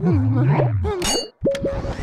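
A game vacuum whooshes as it sucks air.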